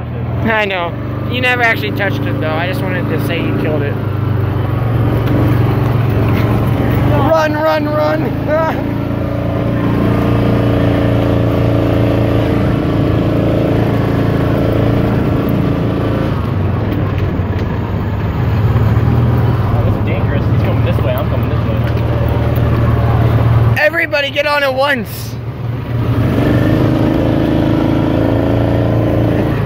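An engine hums steadily as a small vehicle drives.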